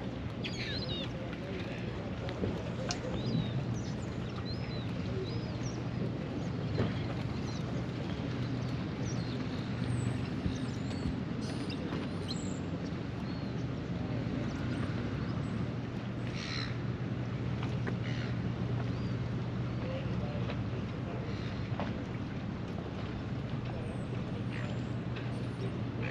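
Water laps gently against a floating dock.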